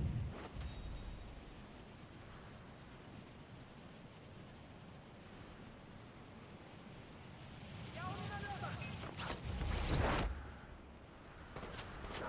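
Wind rushes steadily past during a fast glide.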